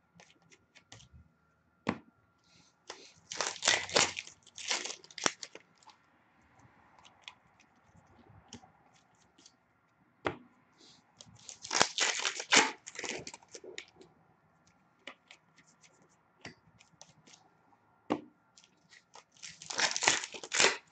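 Trading cards shuffle and flick against each other.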